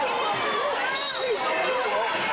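A referee's whistle blows once.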